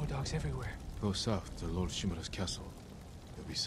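A deeper man's voice answers calmly, close by.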